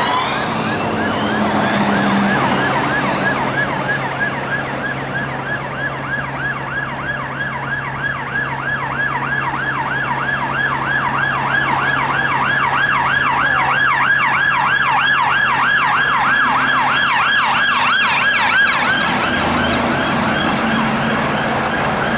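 A heavy truck engine rumbles as it passes close by.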